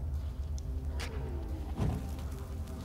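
A heavy blow thuds into a body.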